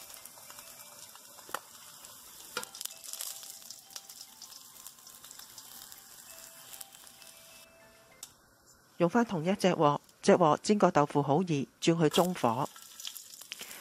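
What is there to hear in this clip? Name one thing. Hot oil sizzles softly in a pan.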